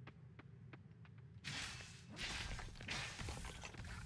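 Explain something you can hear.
A pickaxe chips at rock with sharp knocks.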